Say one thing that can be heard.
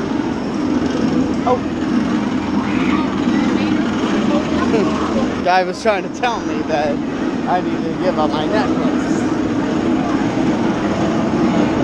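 A crowd of people chatters loudly nearby.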